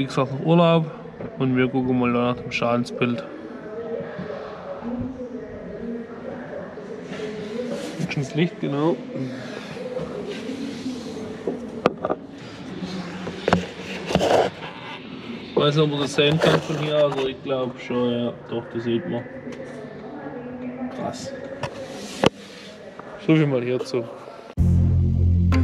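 A young man talks calmly and closely into a microphone in an echoing hall.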